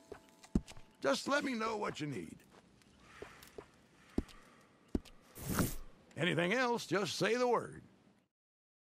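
A man with a deep, gruff voice speaks calmly and close by.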